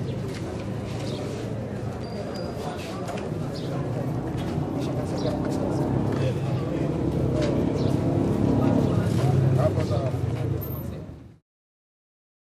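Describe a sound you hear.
Traffic hums along a street.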